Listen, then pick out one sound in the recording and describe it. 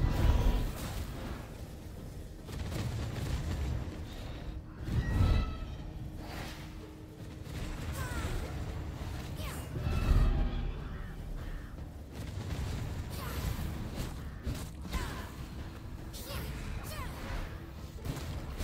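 Magic spells burst and boom in a fight.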